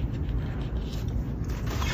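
Paper rustles as hands handle a sheet.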